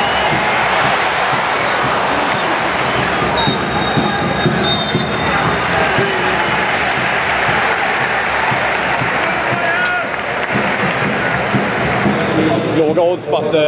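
A large stadium crowd roars and chants loudly, echoing under the roof.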